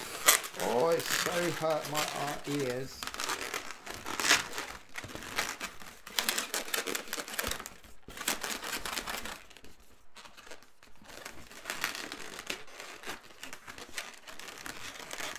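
Rubber balloons squeak and rub as they are twisted.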